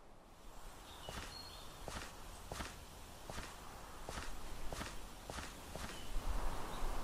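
Shoes tap on pavement in slow footsteps.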